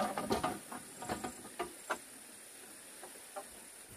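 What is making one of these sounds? Bamboo poles knock and clatter.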